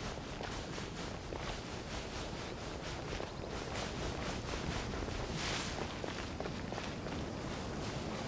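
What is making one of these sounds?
Quick footsteps run over sand.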